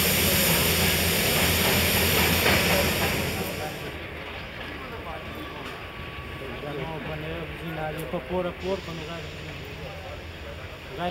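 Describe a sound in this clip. A diesel locomotive engine rumbles steadily as it approaches.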